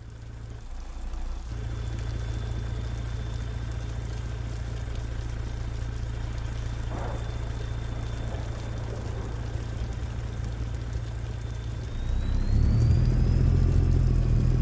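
A truck engine rumbles steadily and revs up louder as it pulls away.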